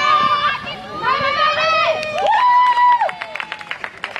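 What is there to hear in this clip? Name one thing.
Young women shout and cheer loudly nearby, outdoors.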